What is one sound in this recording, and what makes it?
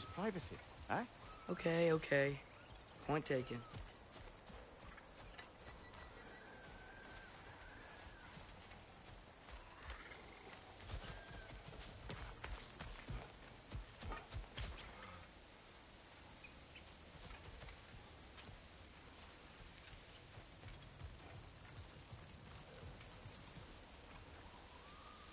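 Footsteps crunch over leaves and soil.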